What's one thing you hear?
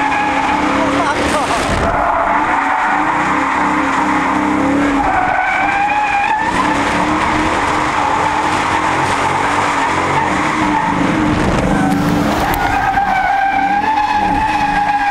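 Tyres squeal on the track.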